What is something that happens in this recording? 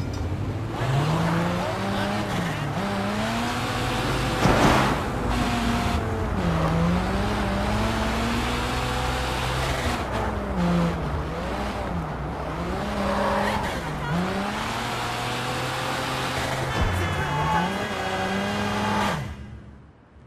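A car engine revs up and down loudly.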